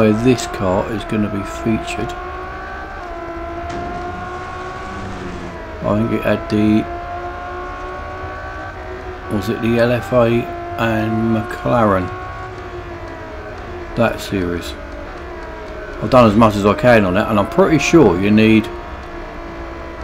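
A racing car engine roars steadily, its pitch slowly climbing and dropping with gear changes.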